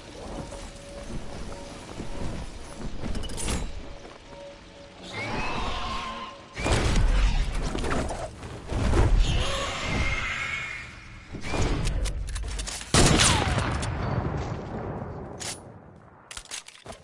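Wind rushes past as a game character glides down through the air.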